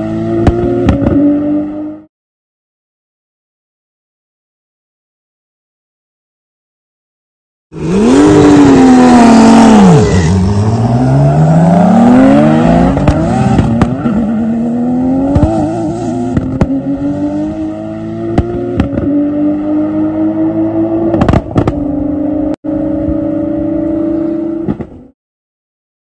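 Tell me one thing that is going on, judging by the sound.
Powerful car engines roar and rev as two cars race away.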